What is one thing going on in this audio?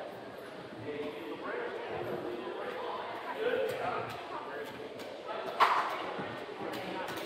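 Children chatter and call out in a large echoing gym.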